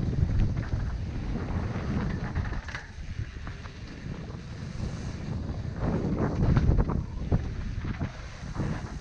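Mountain bike tyres roll and crunch over a dirt trail.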